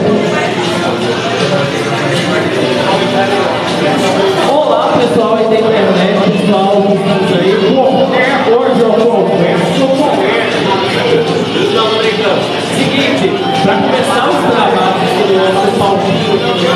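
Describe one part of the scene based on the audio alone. A man talks with animation through a microphone over a loudspeaker in an echoing room.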